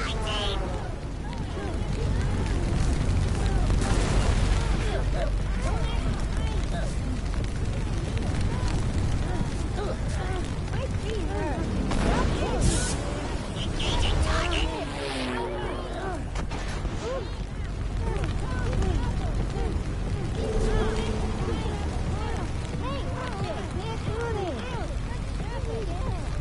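Fire roars with a low, steady rumble.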